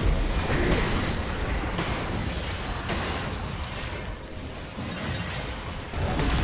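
Game weapons clash and strike rapidly.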